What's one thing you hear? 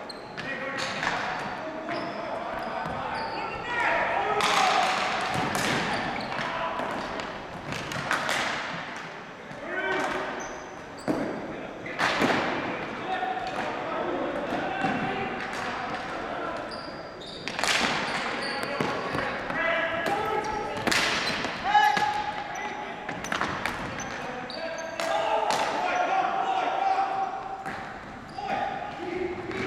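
Sticks clack and a ball knocks across a hard floor in a large echoing hall.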